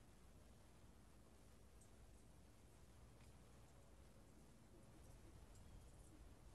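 Wind rumbles softly across an open outdoor space.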